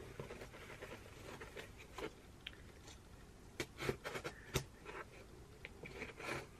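Small tools click and scrape against a hard object up close.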